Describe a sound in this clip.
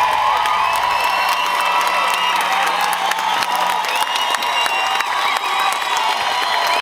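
A crowd cheers and screams nearby.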